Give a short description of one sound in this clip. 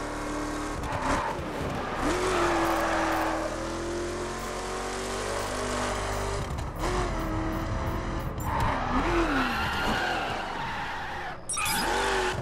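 Tyres screech as a car slides on a slippery road.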